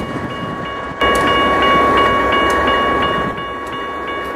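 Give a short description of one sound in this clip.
A locomotive horn blares loudly.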